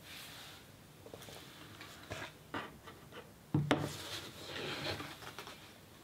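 A sheet of paper slides and rustles on a table.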